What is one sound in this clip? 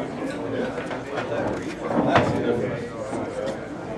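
A cue strikes a ball and pool balls clack together.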